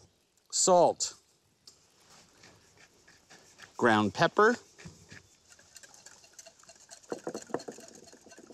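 A whisk clinks against a glass bowl.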